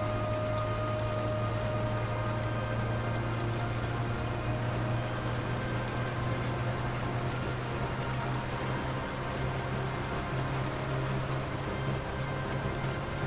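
A van engine hums steadily as it drives along a road.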